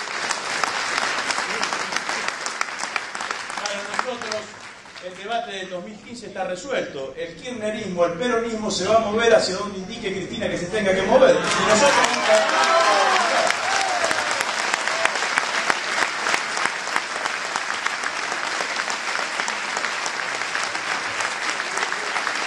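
A crowd applauds loudly in a large room.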